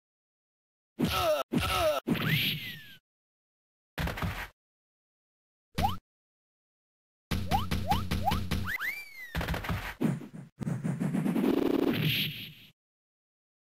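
Cartoon punches and slaps land with sharp thwacks.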